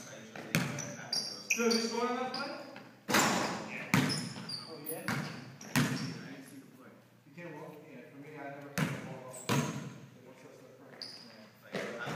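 A basketball bounces hard on a wooden floor in a large echoing hall.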